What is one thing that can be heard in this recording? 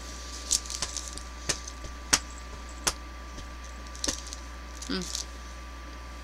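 Plastic wrapping crinkles and clicks close by.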